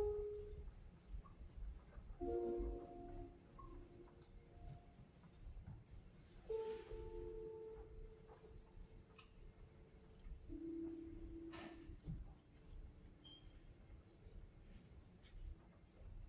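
A grand piano plays slow, sparse notes in a large echoing hall.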